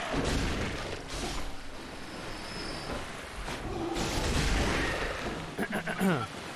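Blades swing and slash in a fierce fight.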